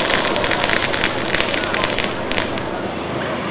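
Fireworks crackle and pop rapidly close by.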